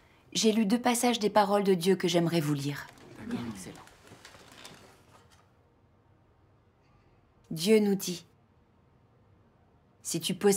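A woman speaks calmly nearby, with pauses.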